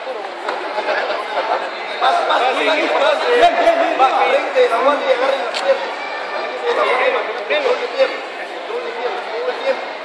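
A crowd of young men and women chatter and shout all around in a large echoing hall.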